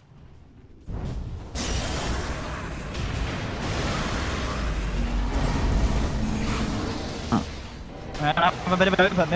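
Fiery blasts roar and crackle.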